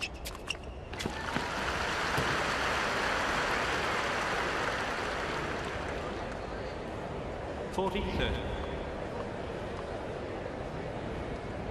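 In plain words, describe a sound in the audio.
A large crowd applauds and cheers in a big open arena.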